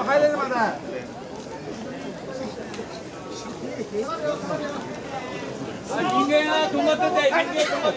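A crowd murmurs and chatters all around.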